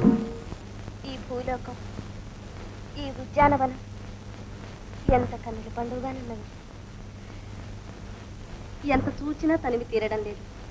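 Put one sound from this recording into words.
A young woman speaks softly in short phrases.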